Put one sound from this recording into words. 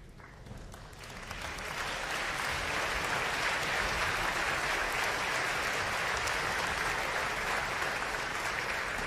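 An orchestra plays in a large hall.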